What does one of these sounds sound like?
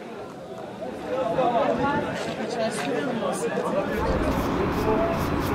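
Several men talk in a crowd outdoors.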